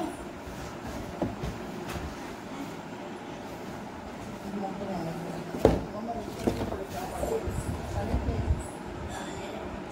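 A cardboard box is handled and knocks on a wooden surface.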